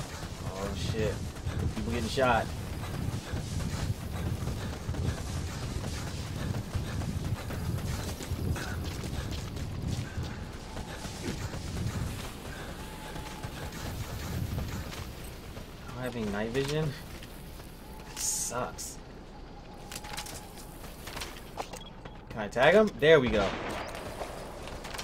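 A young man talks with animation into a microphone, close by.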